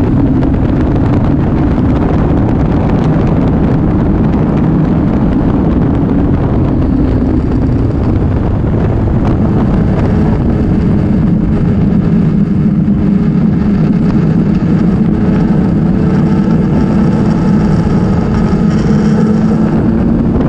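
A motorcycle engine hums steadily while riding along a road.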